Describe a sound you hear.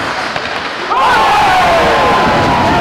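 A crowd cheers loudly in an echoing arena.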